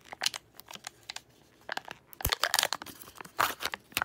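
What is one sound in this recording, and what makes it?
Plastic packaging crinkles as it is pulled open.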